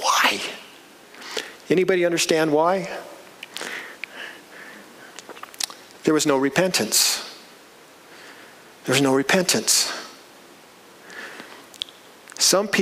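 A middle-aged man preaches with animation into a microphone, his voice echoing in a large room.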